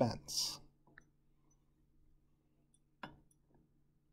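A glass flask clinks lightly.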